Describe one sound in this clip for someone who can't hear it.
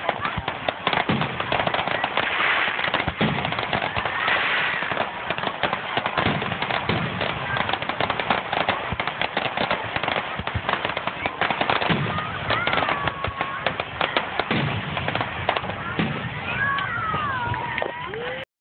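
Firework shells burst with loud bangs.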